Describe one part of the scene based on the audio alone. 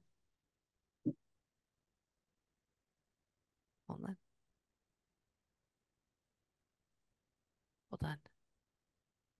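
A woman speaks softly and close into a microphone.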